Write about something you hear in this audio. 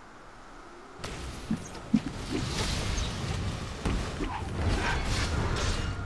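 Magic spells burst and whoosh in a game fight.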